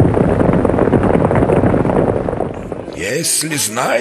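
Many horses gallop with thundering hooves.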